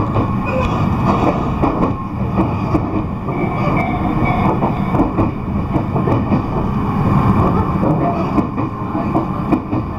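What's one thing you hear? Train wheels clatter and knock over rail joints.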